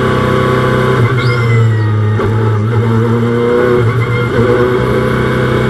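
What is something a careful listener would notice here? A racing car engine's pitch dips and shifts briefly as the car brakes and changes gear.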